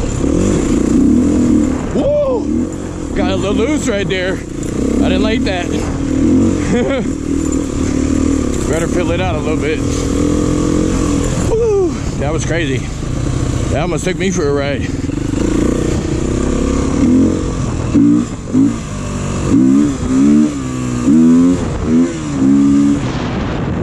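A motorcycle engine hums and revs up and down as the bike rides along.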